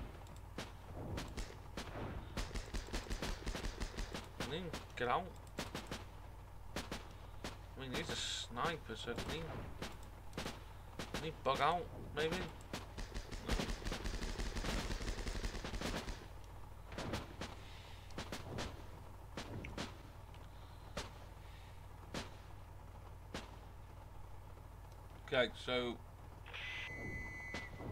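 Gunfire cracks and pops in quick bursts.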